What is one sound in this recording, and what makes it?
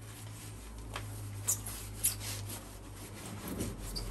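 A sponge scrubs a tub's edge.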